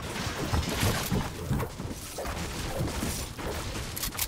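A pickaxe strikes wood with sharp, repeated knocks.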